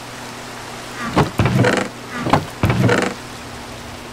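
A wooden chest creaks open and thuds shut.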